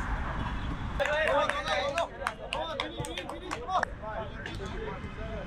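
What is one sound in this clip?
A young man calls out instructions outdoors.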